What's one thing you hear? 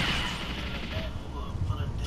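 An energy blast roars and crackles.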